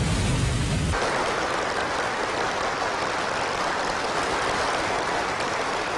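A crowd claps and applauds enthusiastically.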